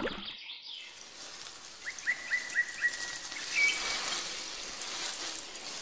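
Water trickles from a small watering can onto sand.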